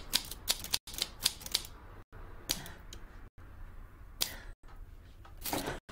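Typewriter keys clatter in quick bursts.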